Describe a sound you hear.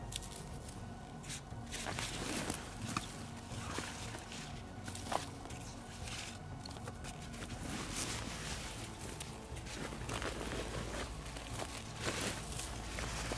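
Fabric of a backpack rustles and scrapes as a man rummages through it.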